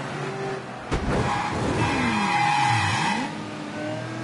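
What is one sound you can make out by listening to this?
Tyres screech loudly as a car skids around a corner.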